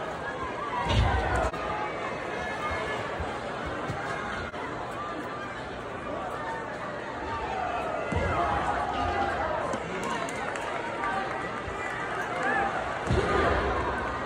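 A wrestler's body slams onto the ring mat with a loud thud.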